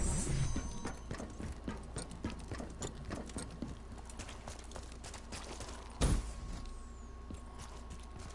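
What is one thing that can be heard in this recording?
Footsteps thud quickly and evenly on dirt and stone.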